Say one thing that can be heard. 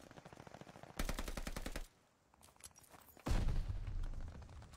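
Loud explosions boom.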